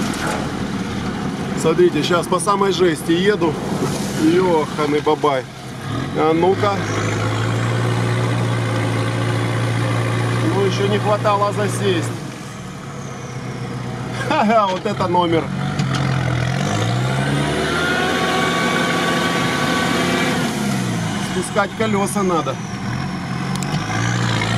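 A diesel engine rumbles steadily and revs up and down.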